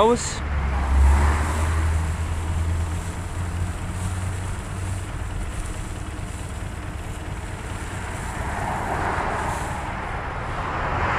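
Dry hay rustles as a hand pushes through it.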